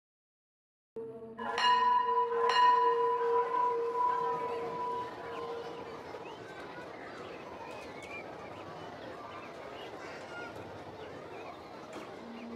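A large crowd of children murmurs outdoors.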